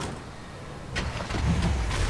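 A pickup truck door opens with a thump.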